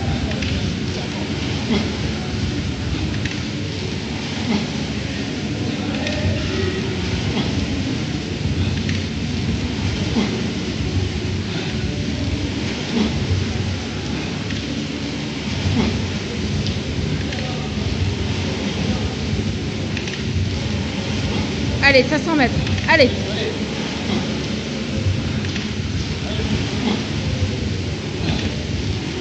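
A rowing machine's flywheel whirs and surges in a steady rhythm.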